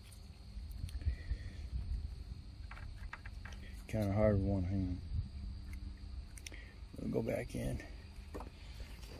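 Plastic parts click and rattle as a connector is handled close by.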